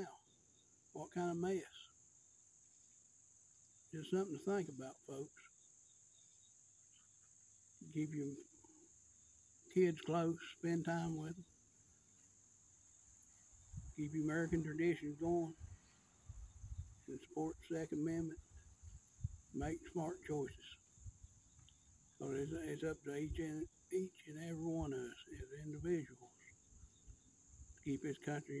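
A middle-aged man speaks calmly and close up, in short phrases with pauses.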